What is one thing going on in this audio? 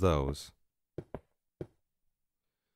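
A pickaxe chips at stone with short knocks.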